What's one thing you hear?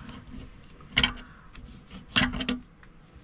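A knife knocks against a plastic cutting board.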